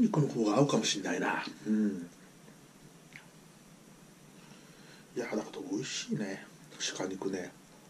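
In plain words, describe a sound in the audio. Chopsticks click against a plate.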